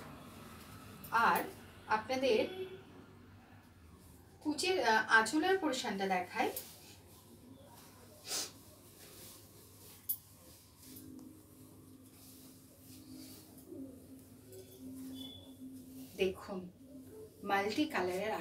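Silk cloth rustles as it is unfolded and shaken.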